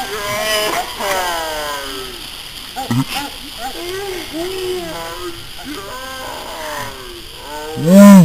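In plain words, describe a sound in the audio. A firework fountain hisses steadily.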